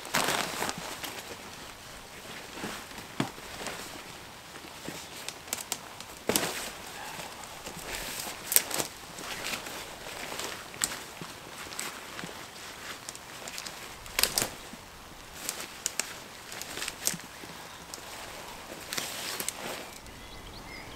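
Nylon fabric rustles and crinkles as a bag is handled.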